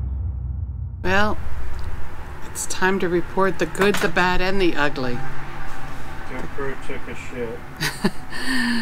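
A middle-aged woman talks with animation, close to a computer microphone.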